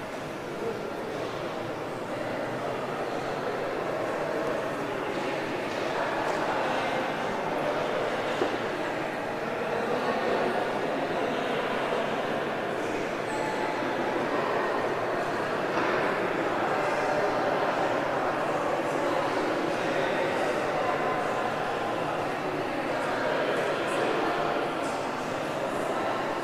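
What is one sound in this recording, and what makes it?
A crowd of adults and children chatter outdoors.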